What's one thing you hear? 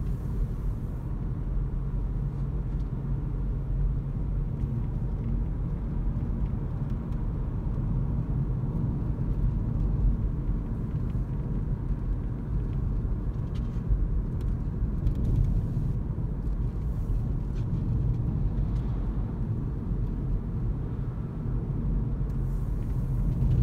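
A car engine hums steadily from inside the cabin as the car drives along.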